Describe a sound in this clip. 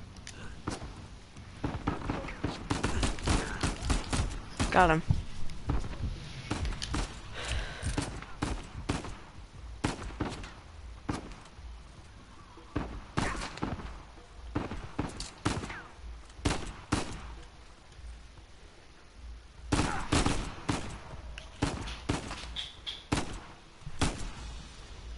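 Pistol shots ring out in sharp bursts.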